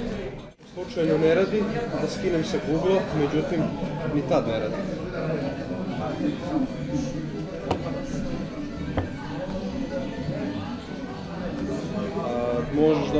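A man talks into a phone close by.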